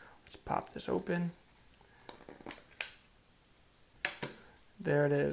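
A small plastic device clicks and taps as hands handle it.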